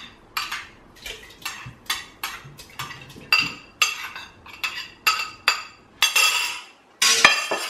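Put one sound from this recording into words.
A metal spoon repeatedly scrapes and clinks against a cup and a steel pot.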